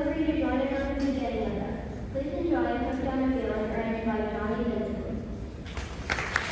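A large band plays a piece to a held final chord in a large echoing hall.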